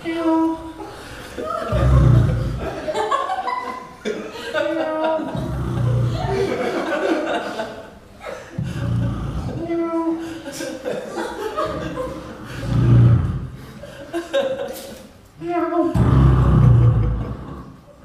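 A young man makes loud rhythmic vocal sounds and deep booming bass into a microphone, heard through loudspeakers.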